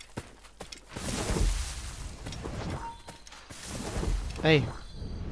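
Leaves rustle as a body pushes through dense plants.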